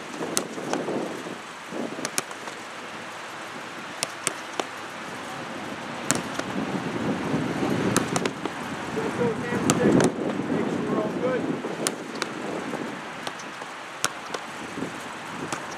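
Footballs are kicked with sharp thuds, again and again.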